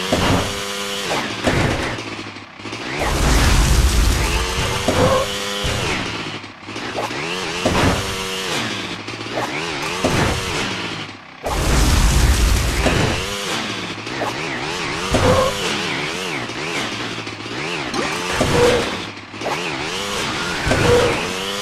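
A snowmobile engine revs up and down in a rising and falling whine.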